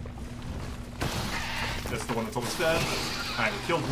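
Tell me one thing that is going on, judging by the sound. Swords clash and a creature screeches in a fight.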